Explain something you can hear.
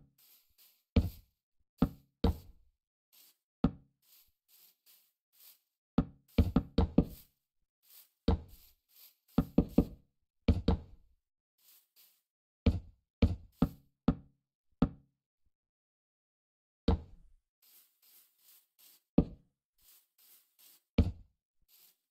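Wooden blocks knock sharply as they are placed, again and again.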